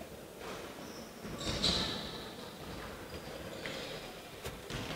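Sneakers squeak on a hard court in a large echoing hall.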